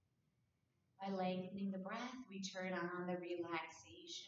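A woman speaks calmly and softly into a microphone, close by.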